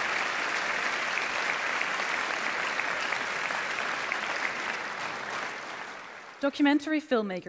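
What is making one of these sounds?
A large audience applauds in an echoing hall, and the applause fades away.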